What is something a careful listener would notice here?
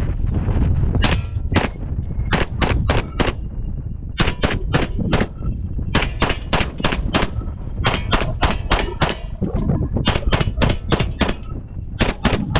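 A gun fires single shots in quick strings, each crack ringing out across open ground.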